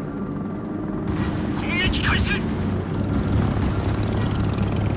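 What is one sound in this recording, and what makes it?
Bombs explode with deep booms.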